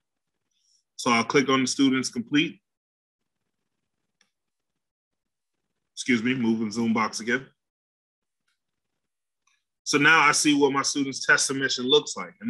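A man speaks calmly into a microphone, heard as if over an online call, with pauses between phrases.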